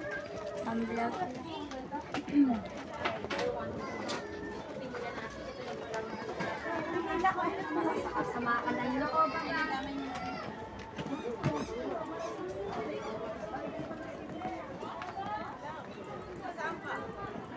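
A crowd of women and men chatter nearby.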